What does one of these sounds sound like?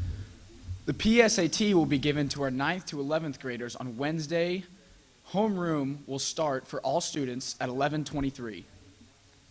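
Another young man speaks calmly into a microphone.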